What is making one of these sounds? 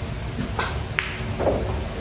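Billiard balls knock together.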